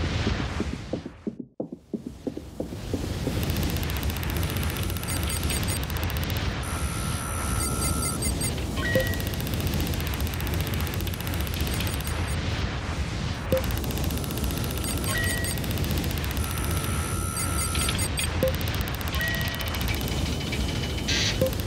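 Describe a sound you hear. A spaceship's engines hum low and steadily.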